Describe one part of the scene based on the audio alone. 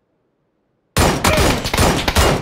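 A rifle fires loud, rapid shots.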